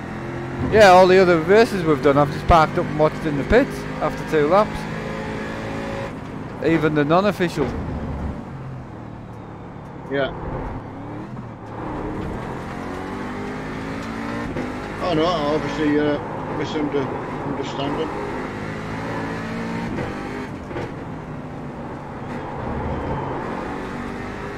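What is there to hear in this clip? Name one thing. A racing car engine drones and shifts pitch steadily.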